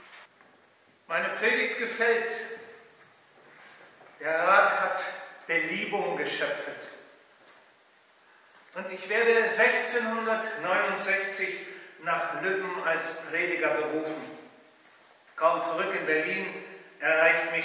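A middle-aged man speaks slowly and expressively, reciting, with echo.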